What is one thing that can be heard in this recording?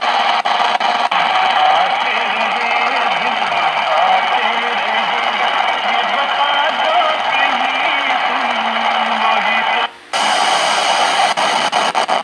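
A portable radio plays loud hissing static with faint broadcast sounds.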